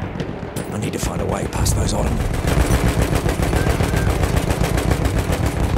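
Heavy gunfire and explosions rumble steadily.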